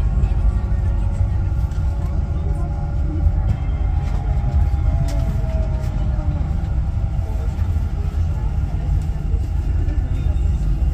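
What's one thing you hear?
A train rumbles steadily along rails.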